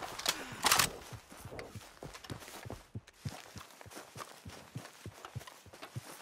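Footsteps swish and thud through tall grass at a steady walking pace.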